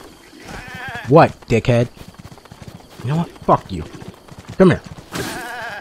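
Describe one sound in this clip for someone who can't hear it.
A goat bleats loudly several times.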